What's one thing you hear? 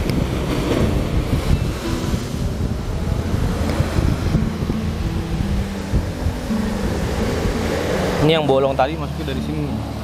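Waves crash and surge against rocks below.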